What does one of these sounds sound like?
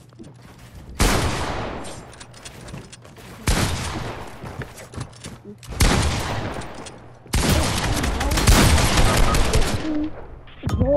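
Loud bursts of crashing and crackling game effects come in quick rounds.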